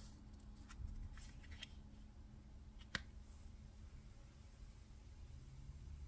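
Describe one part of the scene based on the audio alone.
A card is laid down softly on a cloth.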